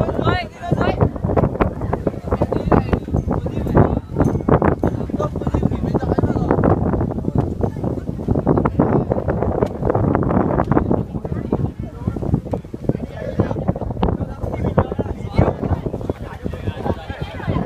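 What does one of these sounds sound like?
A crowd of men and women chatters loudly close by, outdoors.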